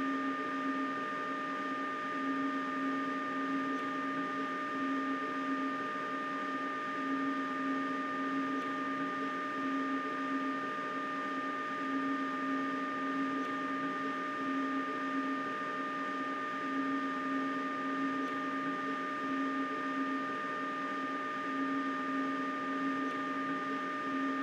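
A train engine hums steadily with a rhythmic whine.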